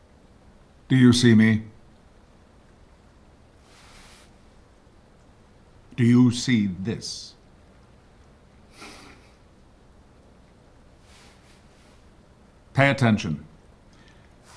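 A man speaks in short, calm phrases close by.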